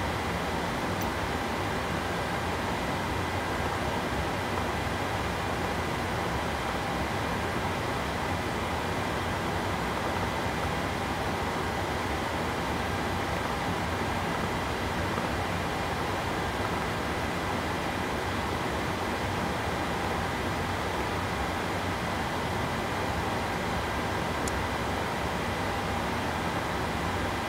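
A steady electrical hum and fan whir fill an aircraft cockpit.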